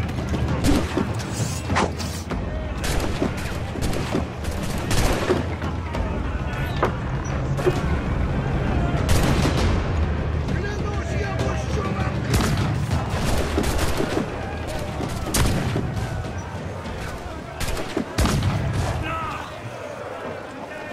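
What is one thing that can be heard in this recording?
Cannons fire in loud booming blasts, again and again.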